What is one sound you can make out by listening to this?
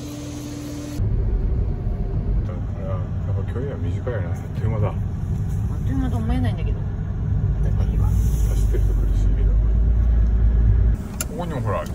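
A car engine rumbles low inside a moving car.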